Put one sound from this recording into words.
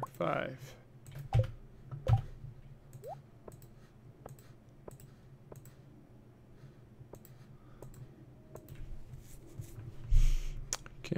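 Short soft clicks and blips sound as items in a game menu are picked.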